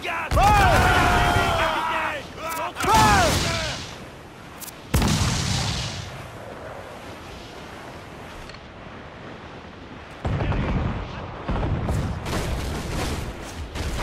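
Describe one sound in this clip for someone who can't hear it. Cannons fire with loud booms.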